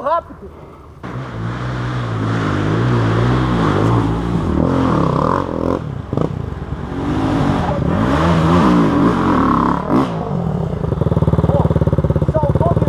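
A motorcycle engine rumbles up close and rises and falls as it rides over rough ground.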